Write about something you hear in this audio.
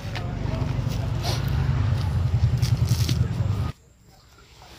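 A hand presses and rustles loose soil.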